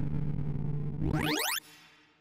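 A quick run of electronic tones sweeps sharply upward and stops.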